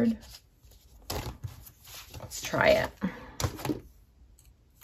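Paper sheets rustle and flap.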